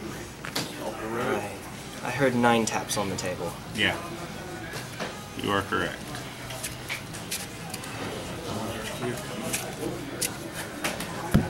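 Playing cards are shuffled by hand, with soft flicking and slapping.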